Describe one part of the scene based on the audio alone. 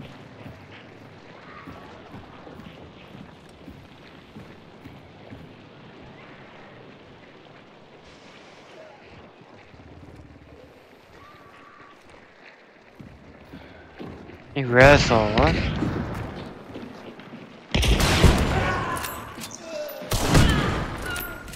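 Footsteps creak slowly on a wooden floor.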